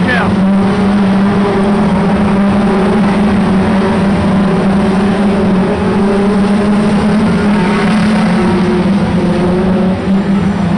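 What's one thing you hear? Racing car engines roar loudly and steadily close by.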